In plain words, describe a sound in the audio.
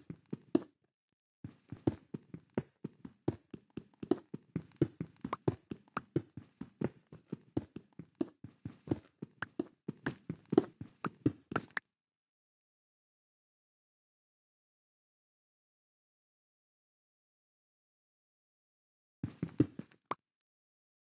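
A pickaxe chips rapidly at stone blocks in a game, with blocks crunching as they break.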